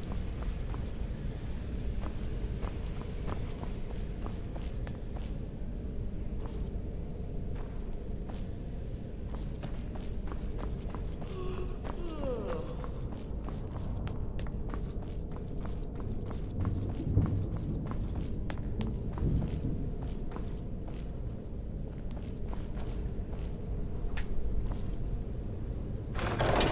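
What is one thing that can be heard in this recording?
Footsteps tread on a stone floor in a large echoing space.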